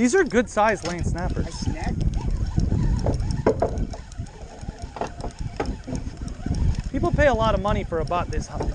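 Wind buffets the microphone outdoors on open water.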